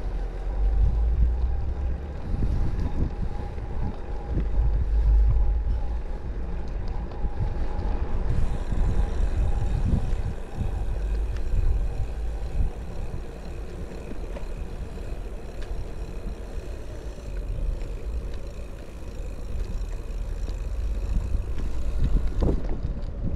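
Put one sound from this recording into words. Wind rumbles and buffets the microphone outdoors.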